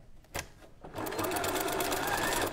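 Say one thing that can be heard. A sewing machine stitches rapidly.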